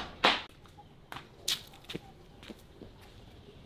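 Footsteps in sandals slap on a hard floor, coming closer.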